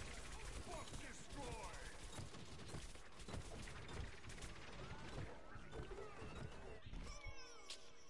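Explosions burst in a video game.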